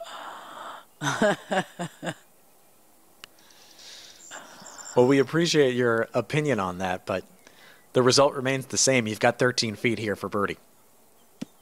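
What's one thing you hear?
A man talks casually into a headset microphone.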